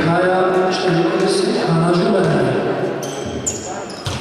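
A crowd of spectators shouts and chants loudly.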